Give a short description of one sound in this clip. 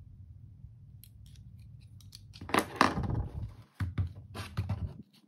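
Small plastic toy parts click and tap under handling fingers.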